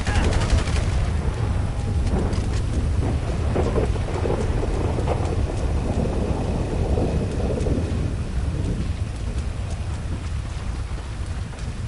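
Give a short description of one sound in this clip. Footsteps run along a road.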